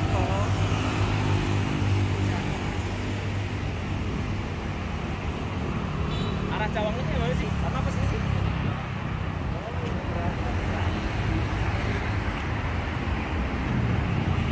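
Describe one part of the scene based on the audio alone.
Traffic roars steadily along a busy road outdoors.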